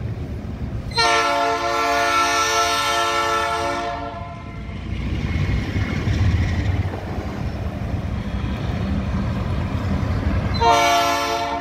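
A locomotive horn blares loudly in long blasts.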